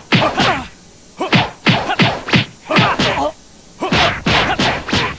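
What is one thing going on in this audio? Energy blasts whoosh and burst in quick succession.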